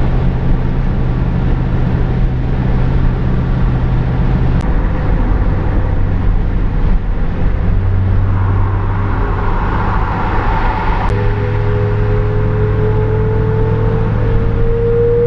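A car engine hums steadily at speed.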